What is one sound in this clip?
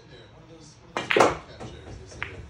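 A cue strikes a ball with a sharp knock.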